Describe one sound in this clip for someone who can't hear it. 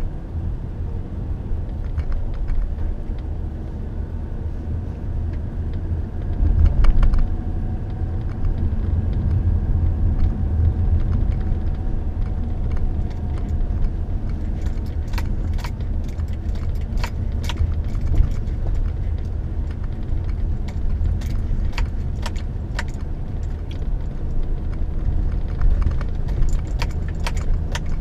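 A car engine rumbles low and steady from inside a moving car.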